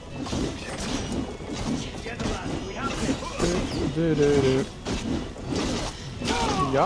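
Blades swing and clash in a fight.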